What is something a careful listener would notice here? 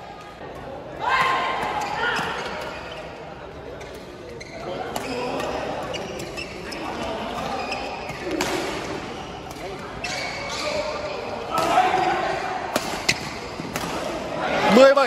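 Rackets strike a shuttlecock back and forth in an echoing hall.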